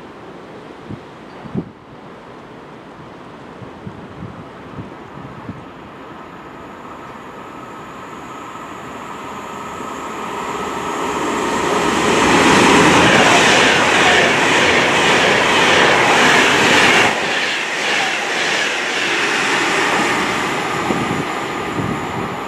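A high-speed train approaches and roars past on the tracks, growing louder.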